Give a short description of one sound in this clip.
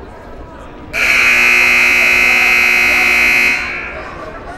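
A buzzer sounds loudly and steadily in a large echoing gym.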